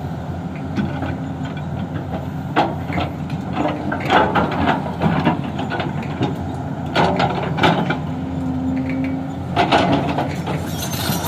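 An excavator bucket scrapes and dumps rocky soil.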